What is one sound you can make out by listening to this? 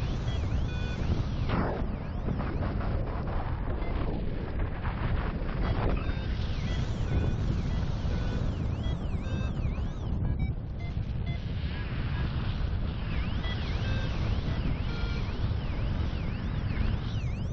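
Wind rushes loudly and steadily past the microphone.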